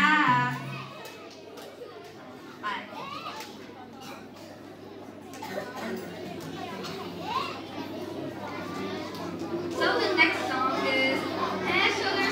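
A crowd of young people chatters and calls out in a large echoing hall.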